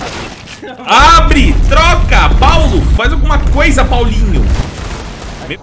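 A young man shouts loudly close to a microphone.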